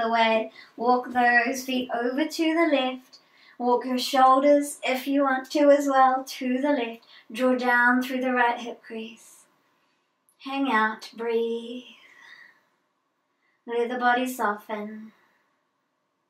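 A woman speaks calmly and slowly through a close microphone.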